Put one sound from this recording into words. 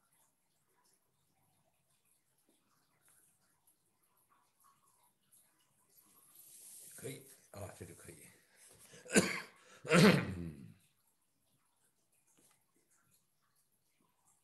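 A brush softly dabs and strokes across paper.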